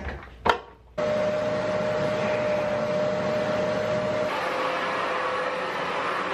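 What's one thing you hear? A carpet cleaning machine whirs and sucks at a carpet.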